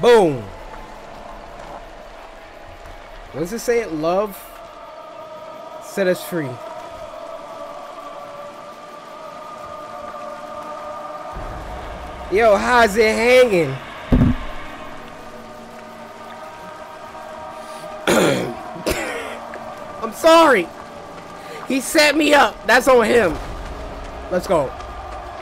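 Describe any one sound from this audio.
A man talks close to a microphone with animated, excited reactions.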